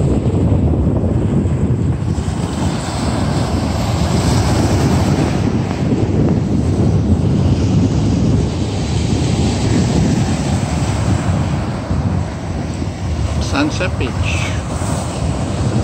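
Wind blows hard across the open beach.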